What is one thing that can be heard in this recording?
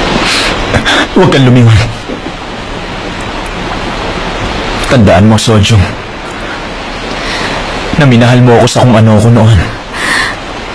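A young man speaks quietly and tenderly, close by.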